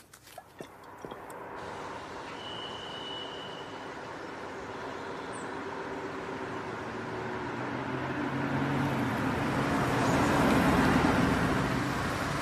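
A car engine hums as a car drives by and grows louder.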